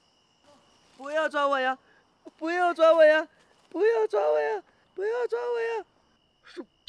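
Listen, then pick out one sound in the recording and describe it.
A young man cries out in fear, pleading.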